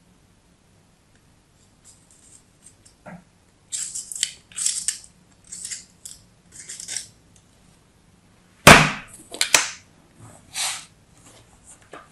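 A knife scrapes and slices through crumbly kinetic sand.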